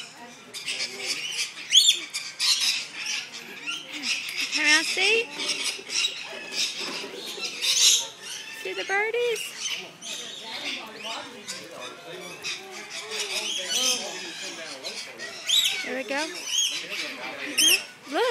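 Parrots screech and squawk loudly close by.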